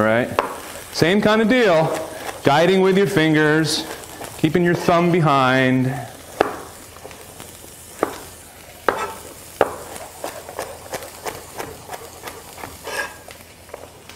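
A knife chops on a cutting board with quick, light taps.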